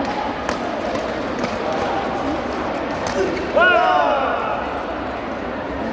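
A crowd of players chatters in the background.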